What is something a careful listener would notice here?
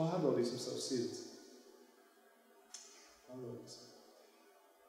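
A man speaks calmly into a microphone, with long pauses.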